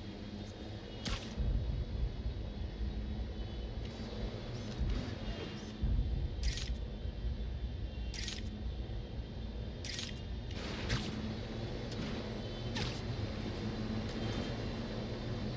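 Web lines shoot out with sharp, hissing snaps, again and again.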